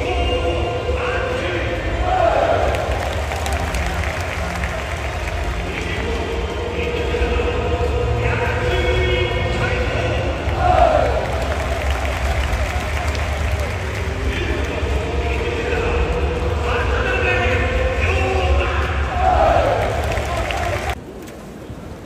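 A large crowd of fans chants and sings loudly together in an open stadium.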